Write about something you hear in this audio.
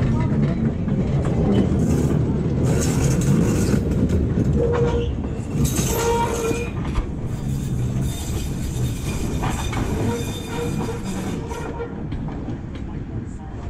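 A streetcar rumbles along the rails and slowly moves away.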